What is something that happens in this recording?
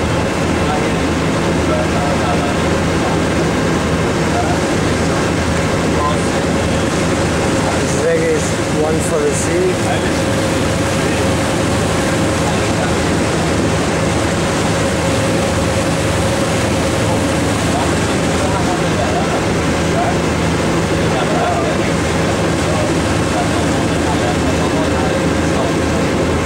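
Wind blows across the open sea.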